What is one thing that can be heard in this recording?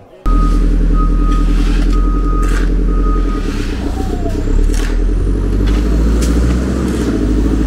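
A loader's engine rumbles steadily nearby.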